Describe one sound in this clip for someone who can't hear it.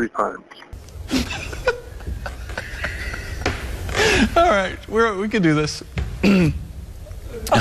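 A middle-aged man laughs heartily into a close microphone.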